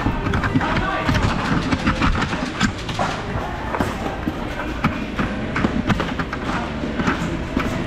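Foam rounds are pushed into a toy blaster with soft clicks.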